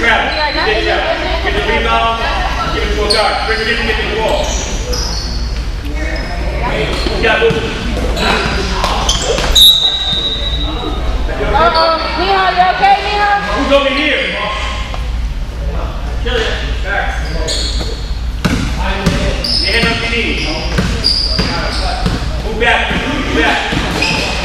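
Children shout and call out across a large echoing gym.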